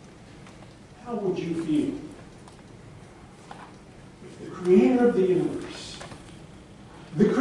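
A man speaks from the front of a quiet echoing hall, heard from a distance.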